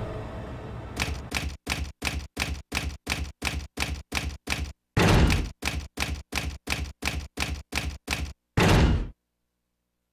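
Rapid clicks tick out one after another, like typewriter keys.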